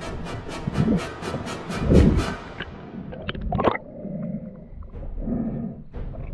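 Water sloshes and gurgles, muffled as if heard underwater.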